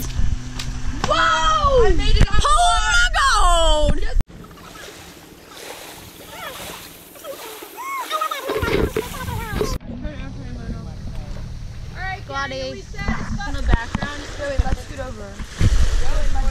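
Young women talk and exclaim excitedly nearby.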